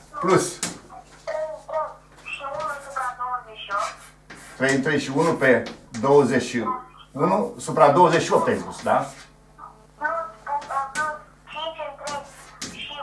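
An elderly man speaks calmly, lecturing.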